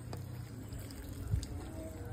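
Broth splashes as it is poured from a ladle into a bowl.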